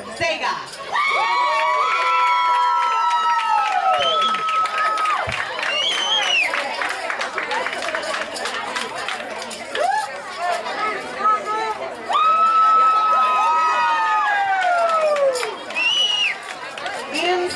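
Young girls cheer and scream excitedly.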